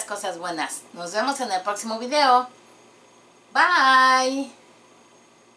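A middle-aged woman speaks cheerfully and animatedly close to a microphone.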